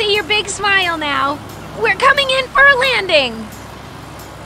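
A young cartoon voice speaks cheerfully and with animation.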